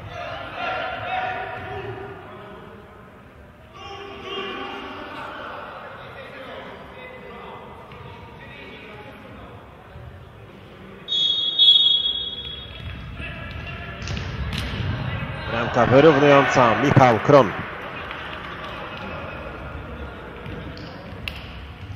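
A ball thuds as players kick it in an echoing hall.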